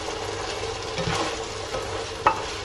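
A spatula scrapes against a frying pan.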